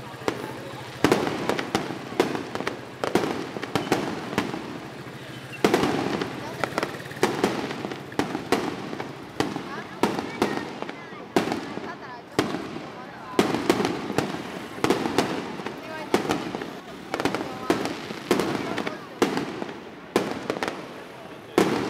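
Aerial firework shells burst with sharp booms that echo between buildings.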